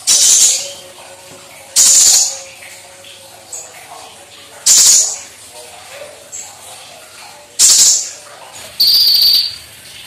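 A small bird sings loud, shrill bursts close by.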